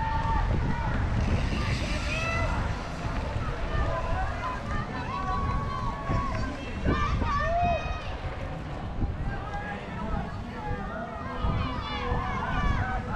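Bicycle tyres crunch over a dirt trail.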